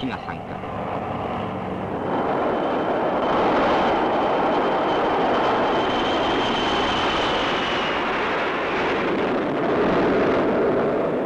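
Jet aircraft roar loudly overhead, the roar swelling as they pass.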